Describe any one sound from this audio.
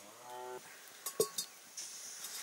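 A metal pot clanks down onto the fire.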